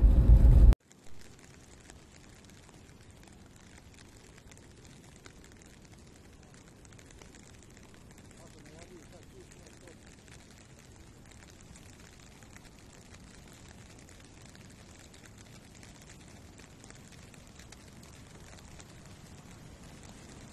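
A wide river flows quietly.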